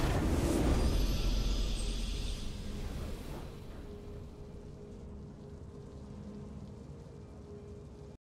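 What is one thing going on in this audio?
A soft, triumphant musical chord rings out and slowly fades.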